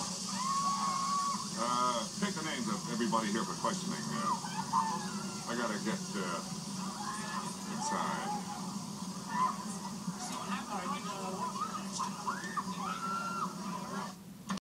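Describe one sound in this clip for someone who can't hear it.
A young man talks, heard through a loudspeaker.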